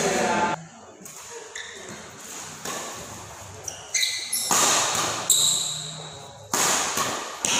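Badminton rackets strike a shuttlecock in an echoing indoor hall.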